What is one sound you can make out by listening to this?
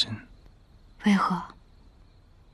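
A young woman asks a short question softly, close by.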